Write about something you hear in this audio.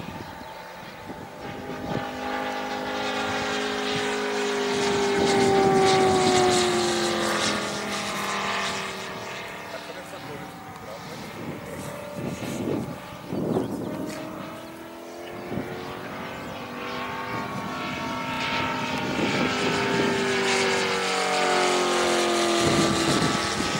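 A propeller plane's engine drones overhead, its pitch sliding down as it passes and swelling again as it returns.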